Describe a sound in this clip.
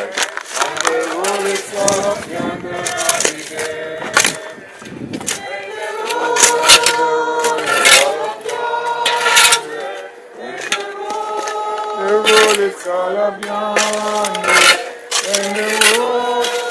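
A crowd of men and women sings a slow hymn outdoors.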